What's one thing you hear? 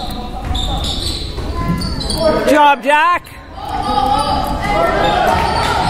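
Young players call out to each other in an echoing gym.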